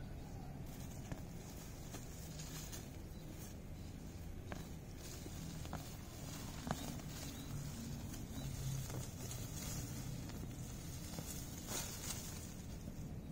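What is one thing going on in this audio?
Leaves and grass rustle close by.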